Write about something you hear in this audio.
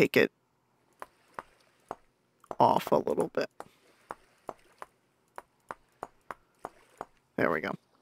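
Wooden blocks knock softly as they are placed one after another.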